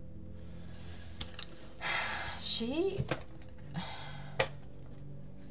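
Playing cards slide and rustle against each other as they are gathered up.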